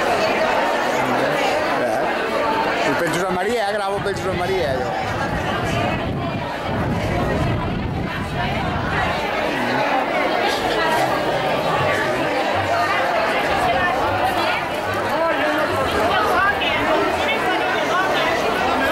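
A crowd of men and women chatter loudly nearby outdoors.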